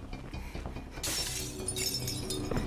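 Window glass smashes and shatters.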